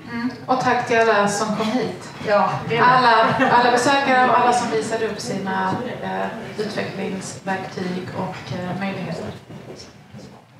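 A woman speaks into a microphone to an audience in a room.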